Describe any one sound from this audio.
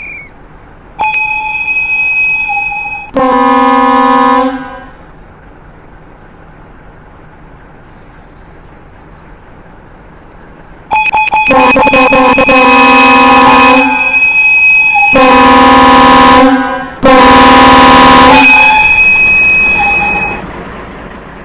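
A train horn blasts loudly several times, close by.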